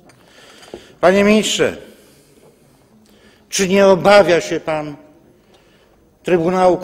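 An elderly man speaks loudly and forcefully into a microphone in a large echoing hall.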